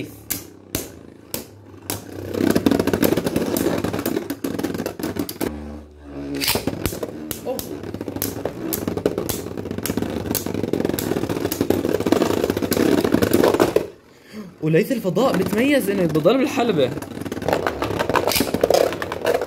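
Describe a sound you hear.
Spinning tops whir and scrape in a plastic dish.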